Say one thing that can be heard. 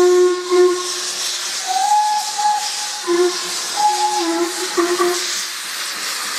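A steam locomotive's whistle blows loudly in several short and long blasts.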